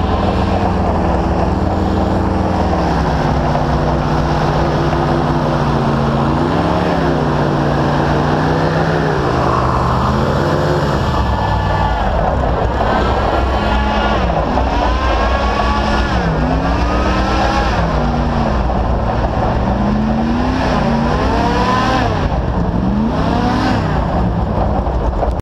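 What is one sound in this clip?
A second airboat's engine drones alongside, rising and falling in pitch.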